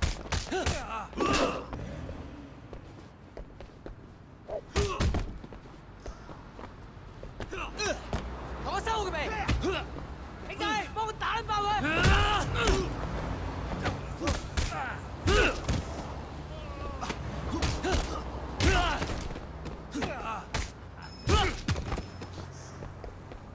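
Men grunt and shout as they brawl.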